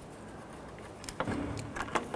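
A metal tool clicks and scrapes against metal close by.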